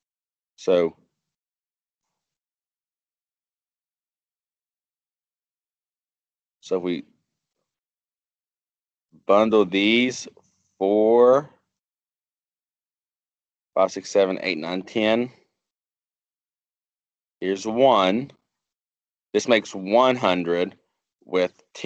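A man speaks calmly through a microphone, in short phrases with long pauses.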